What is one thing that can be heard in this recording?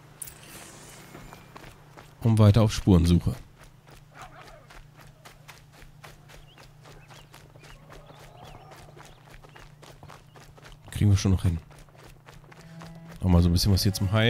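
Footsteps crunch softly on grass and dirt.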